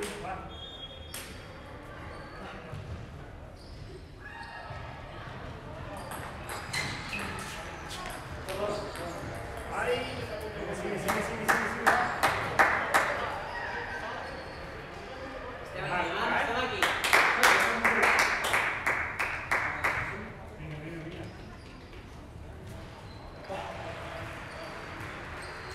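A table tennis ball clicks sharply back and forth off paddles and a table in a large echoing hall.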